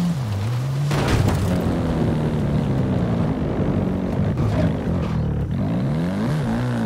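Tyres rumble over wooden ramps.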